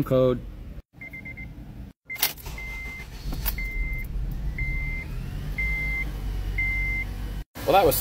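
A car's warning chime beeps at a steady, even pace.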